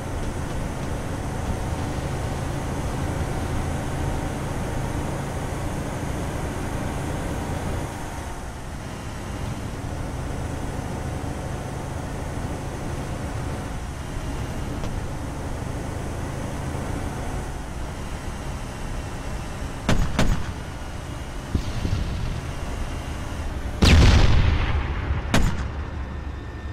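Tank tracks clatter and grind on the ground.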